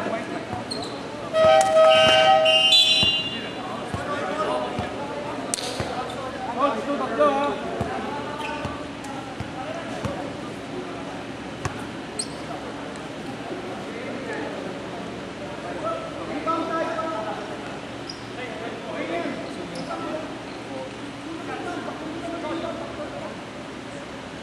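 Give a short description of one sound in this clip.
Young men call out to each other across the court.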